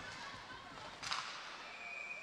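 A hockey puck smacks against a goalie's pads.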